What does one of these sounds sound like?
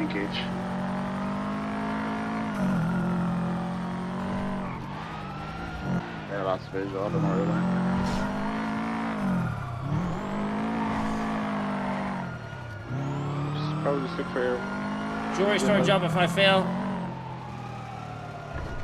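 A car engine revs up and down as the car drives along.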